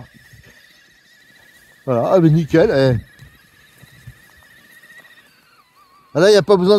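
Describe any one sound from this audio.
A small electric motor whines steadily.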